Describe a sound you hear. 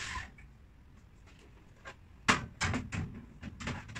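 A woman handles cabinet parts, which clatter and tap.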